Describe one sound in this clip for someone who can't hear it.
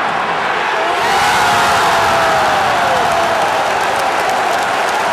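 A stadium crowd cheers louder in a sudden surge.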